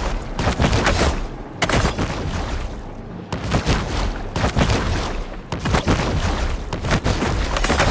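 Water swooshes as a large fish swims quickly.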